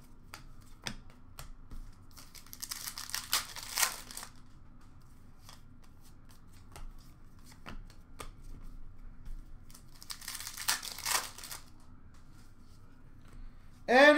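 Hands flick and sort trading cards.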